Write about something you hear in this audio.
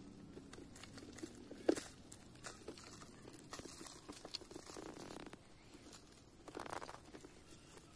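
Scissors snip through roots.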